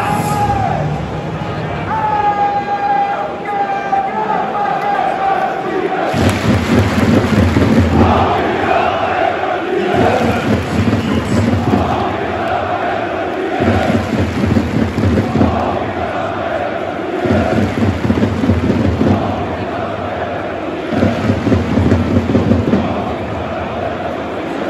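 A large crowd of fans sings and chants loudly in a big open stadium.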